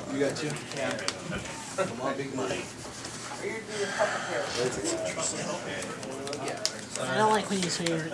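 Playing cards are shuffled softly by hand.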